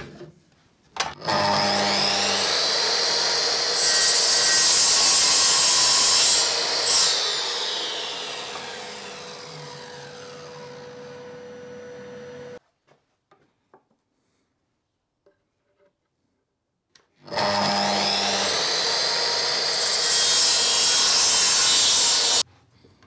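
A mitre saw motor whirs up to speed and slowly winds down.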